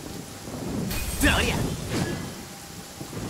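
A magical blast bursts with a bright crackling whoosh.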